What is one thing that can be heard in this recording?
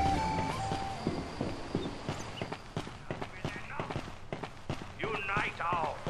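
Footsteps tap quickly on a hard stone floor.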